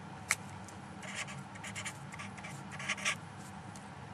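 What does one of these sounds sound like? A felt-tip marker squeaks and scratches on paper.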